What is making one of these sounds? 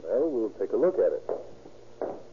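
A man speaks briskly through a radio microphone.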